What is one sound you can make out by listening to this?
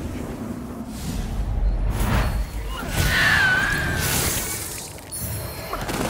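Magic bursts crackle and whoosh.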